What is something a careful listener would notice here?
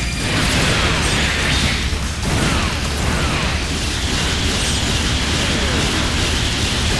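Laser beams fire with sharp electronic zaps.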